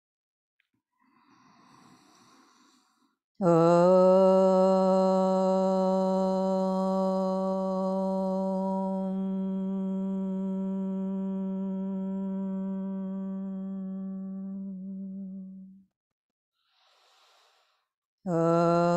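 A woman breathes in deeply.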